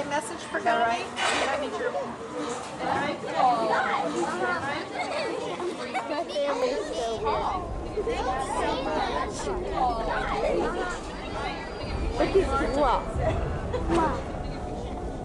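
A young girl talks with animation close by.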